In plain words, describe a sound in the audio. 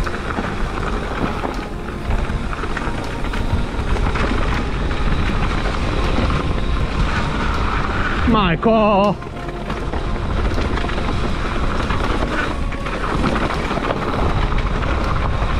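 Bike tyres roll and crunch over a dirt trail with dry leaves.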